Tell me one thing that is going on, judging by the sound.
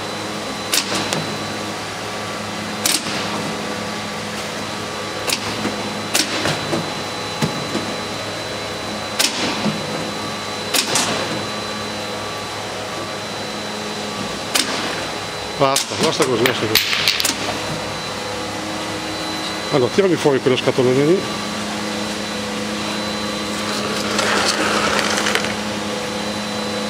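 A conveyor machine hums steadily.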